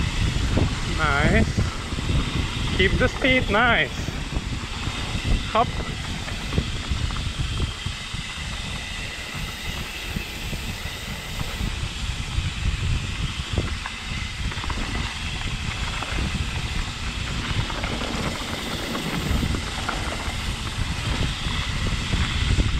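Wind rushes and buffets outdoors during a fast ride.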